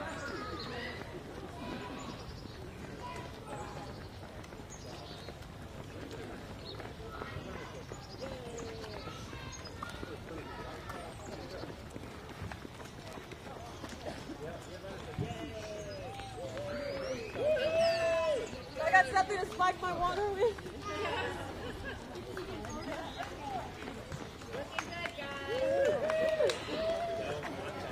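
A crowd of people cheers and calls out outdoors.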